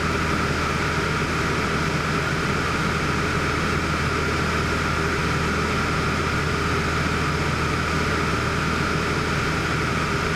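Wind rushes past the cabin.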